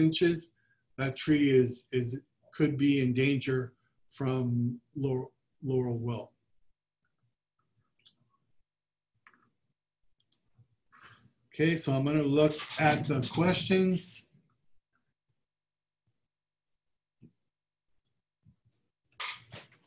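A man speaks calmly through a microphone, in pauses.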